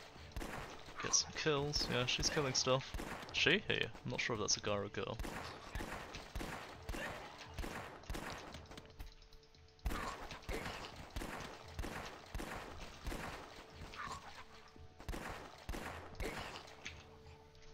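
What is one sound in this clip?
Gunshots ring out in quick, repeated bursts.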